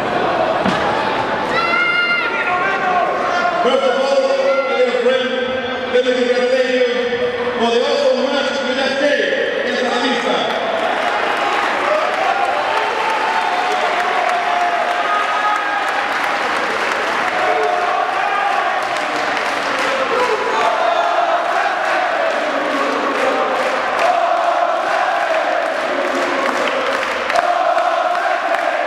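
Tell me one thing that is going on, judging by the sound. A man announces loudly through a loudspeaker in a large echoing hall.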